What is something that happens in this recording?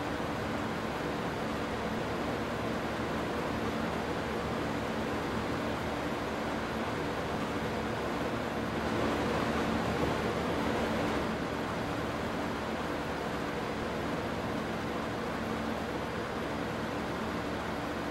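Grain pours into a trailer with a rushing hiss.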